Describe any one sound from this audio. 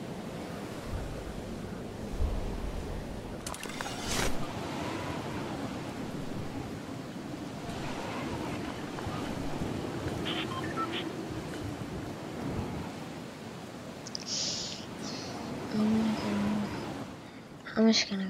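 Wind rushes steadily during a long fall through the air.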